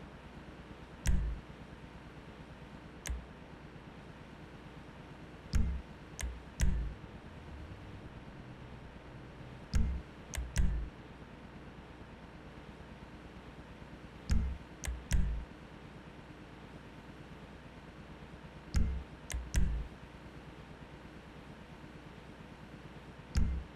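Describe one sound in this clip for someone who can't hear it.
Soft menu clicks thud now and then.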